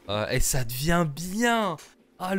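A young man laughs into a close microphone.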